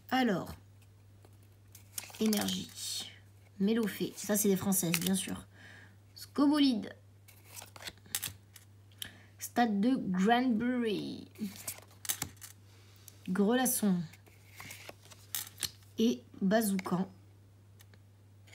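Trading cards slide against each other as they are flipped through.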